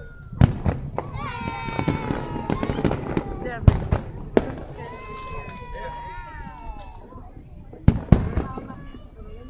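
Fireworks boom and bang in the distance.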